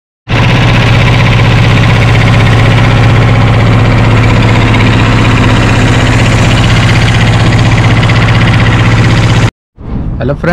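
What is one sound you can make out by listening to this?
A boat's motor drones loudly and steadily.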